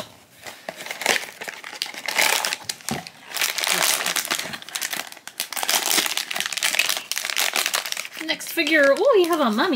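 A foil wrapper crinkles and rustles loudly.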